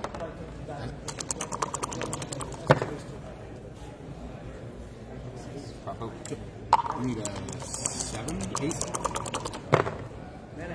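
Dice rattle in a cup being shaken.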